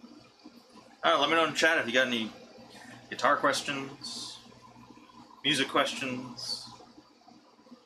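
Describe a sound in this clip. A man talks casually, close to a microphone.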